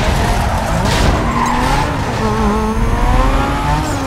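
Tyres screech as a car skids around a bend.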